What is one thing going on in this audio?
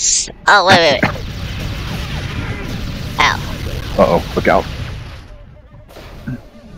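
An energy rifle fires rapid shots.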